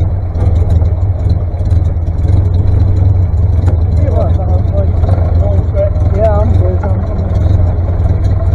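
Several old tractor engines idle with a steady, low chugging rumble outdoors.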